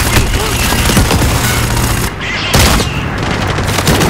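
Gunshots ring out in loud bursts.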